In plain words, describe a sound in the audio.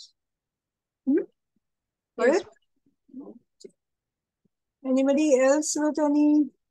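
A woman speaks calmly and clearly over an online call, in short bursts with pauses.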